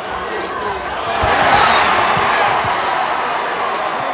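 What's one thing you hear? A crowd roars loudly.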